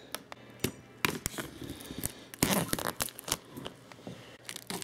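A clear plastic sheet crackles as it is peeled away.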